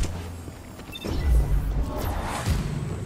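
An energy blast crackles and explodes.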